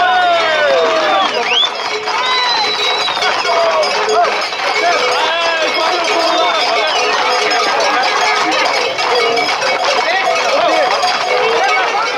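A crowd of men and women shout and whistle excitedly outdoors.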